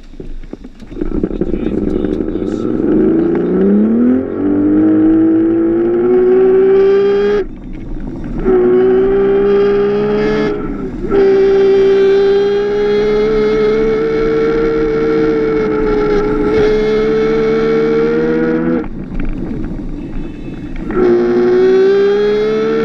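A small kart engine revs up and drones loudly close by, easing off now and then.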